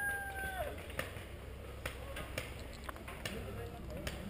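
Paintball guns fire in quick, sharp pops nearby.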